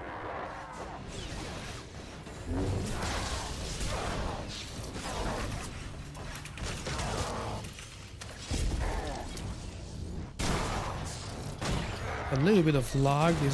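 Energy blades hum and clash in a fight.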